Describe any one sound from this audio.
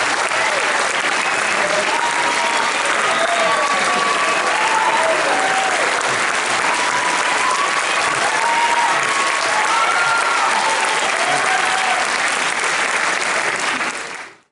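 A large crowd claps and cheers loudly.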